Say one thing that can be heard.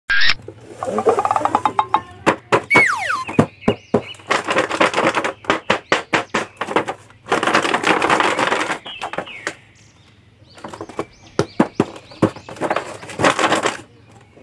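Stiff plastic packaging crinkles and clicks as hands turn a toy box over.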